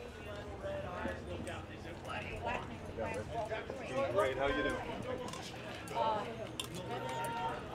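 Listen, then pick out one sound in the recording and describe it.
Men and women chat outdoors.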